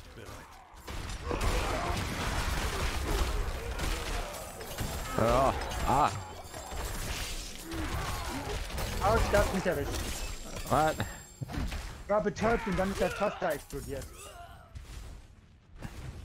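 Magic blasts and heavy impacts crash and boom in a fight.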